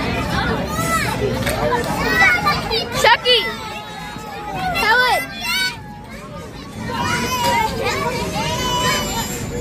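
A crowd of young children shout and squeal with excitement close by.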